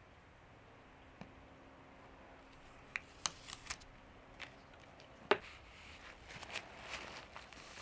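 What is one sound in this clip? A thin board scrapes and clicks against a hard plastic case.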